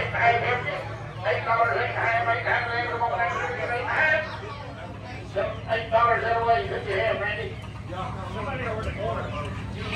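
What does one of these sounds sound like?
Roosters crow loudly nearby, one after another.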